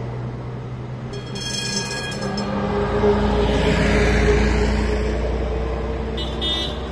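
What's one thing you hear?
A second bus rumbles past with a deep engine roar.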